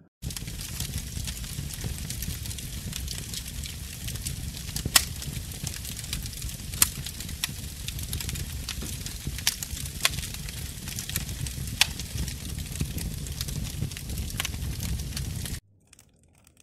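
A fire crackles and pops loudly.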